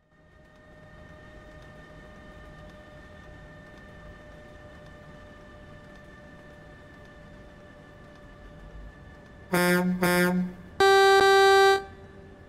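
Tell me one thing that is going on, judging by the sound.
A big truck engine idles steadily.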